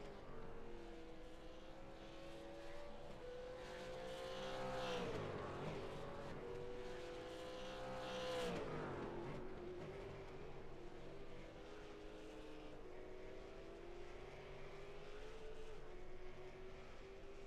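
A racing car engine idles roughly.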